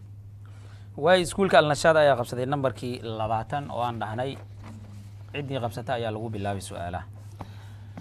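A man reads out through a microphone.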